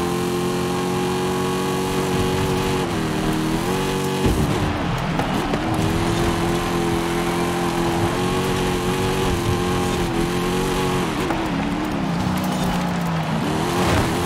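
A car engine roars steadily, its pitch dipping and rising as the gears shift.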